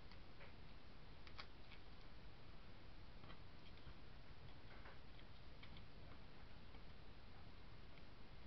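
Adhesive tape crackles as it is peeled and pressed.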